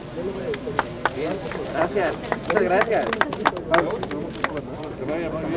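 A crowd of people claps outdoors.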